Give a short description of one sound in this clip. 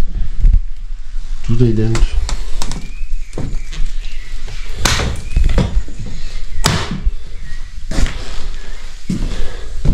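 Footsteps crunch over debris on a wooden floor.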